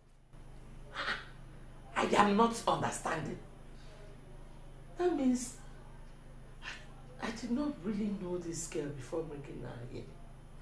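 A middle-aged woman speaks tearfully and with distress, close by.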